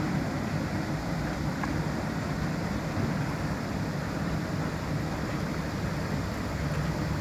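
Churned water rushes and splashes in the wake.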